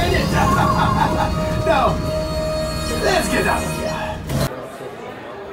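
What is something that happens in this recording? A ride's engine rumbles loudly with electronic whooshing effects.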